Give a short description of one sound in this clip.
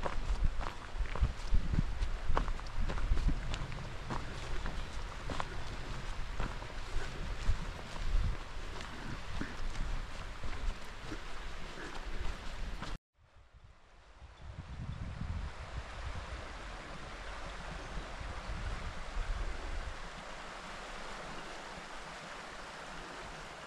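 A river rushes steadily over stones.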